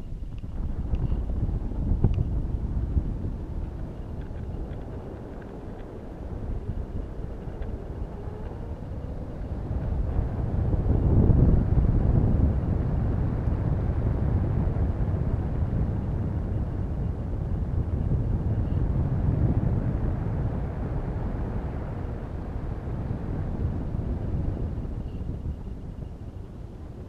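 Wind rushes and buffets steadily against the microphone, with low rumbling gusts.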